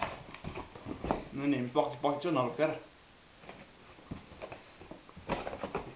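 Cardboard flaps scrape and thump as a box is opened.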